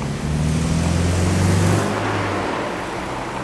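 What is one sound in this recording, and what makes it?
A tram's motor hums low, then fades away.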